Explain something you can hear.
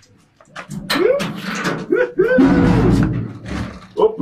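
A metal door creaks and scrapes as it swings open.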